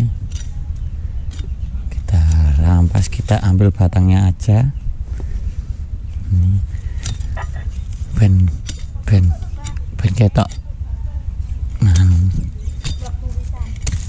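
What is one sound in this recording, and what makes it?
A blade chops at a plant stem with sharp knocks.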